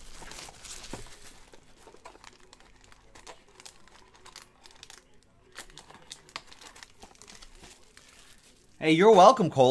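Cardboard packaging rustles and scrapes as it is handled.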